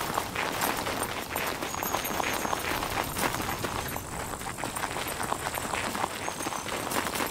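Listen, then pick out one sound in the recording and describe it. Footsteps crunch steadily through dry grass and brush.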